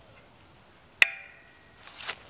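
A metal tool snaps sharply against wire, ringing briefly.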